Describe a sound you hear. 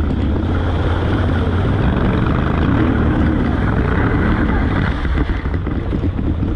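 Water splashes as a motorcycle wades through a muddy flooded track.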